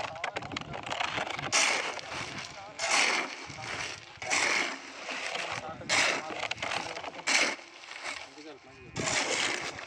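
Hands scoop and scrape loose gravel, which rattles and crunches.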